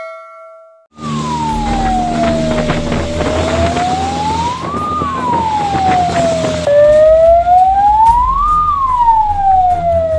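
A siren wails, rising and falling slowly.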